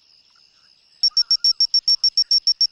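A clock alarm beeps loudly and rapidly.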